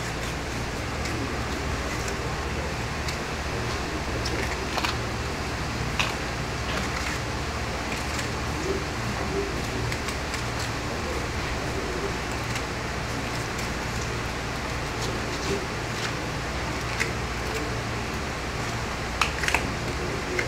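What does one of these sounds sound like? A knife slices through raw meat with soft wet sounds.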